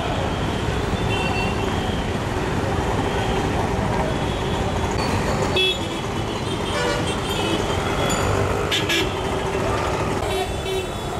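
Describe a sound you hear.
Vehicle horns honk now and then.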